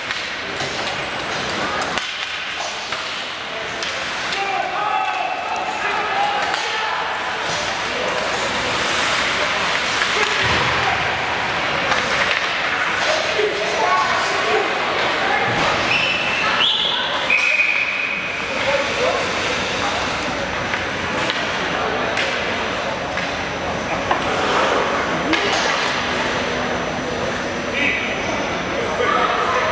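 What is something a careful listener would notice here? Sticks click against a puck.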